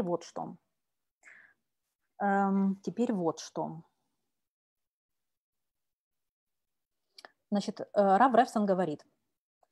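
A woman speaks calmly over an online call, in short phrases with pauses.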